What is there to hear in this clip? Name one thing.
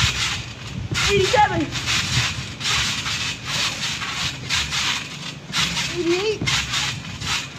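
Young boys shout and laugh nearby.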